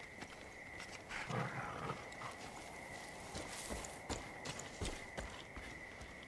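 Footsteps crunch softly through undergrowth.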